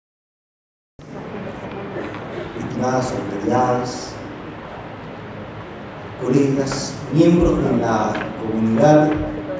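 A man speaks formally into a microphone over loudspeakers in a large echoing hall.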